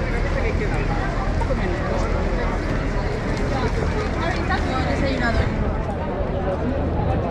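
A crowd of people chatters around outdoors.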